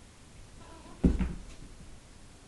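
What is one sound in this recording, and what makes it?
A cat jumps down and lands on the floor with a soft thump.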